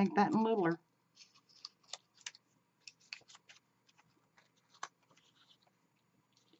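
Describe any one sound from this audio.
Paper crinkles and rustles as hands fold it.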